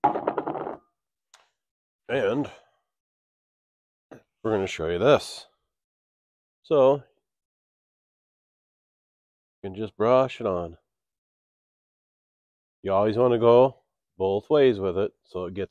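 A man talks calmly and close by, in short bursts with pauses.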